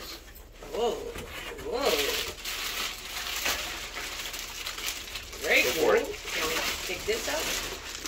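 Paper and cardboard rustle as a box is unpacked.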